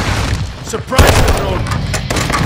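Gunshots fire in a rapid, loud burst.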